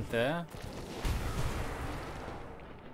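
A heavy thud booms and rumbles low.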